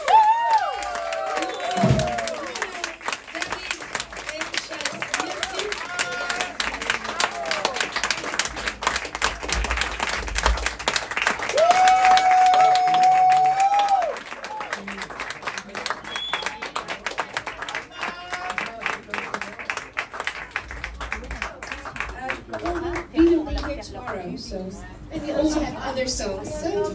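A woman sings into a microphone over a live band.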